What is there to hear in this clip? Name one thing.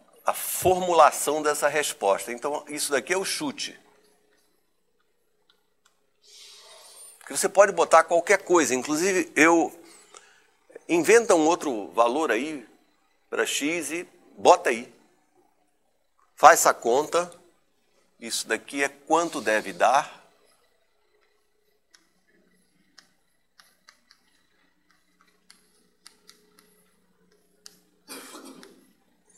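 An elderly man lectures calmly and clearly, close by.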